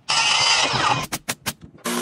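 A nail gun fires with sharp bangs.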